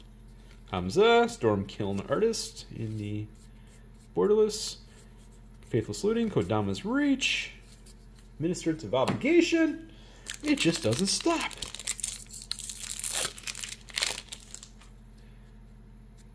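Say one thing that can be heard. Playing cards slide and rustle against each other in someone's hands.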